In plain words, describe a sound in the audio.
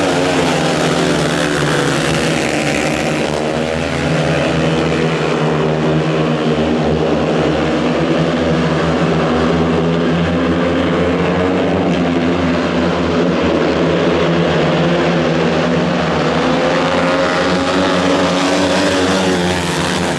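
Several motorcycle engines roar loudly as the bikes race past, rising and falling in pitch.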